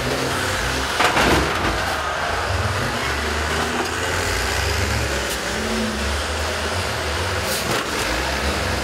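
Metal crunches as buses smash into each other.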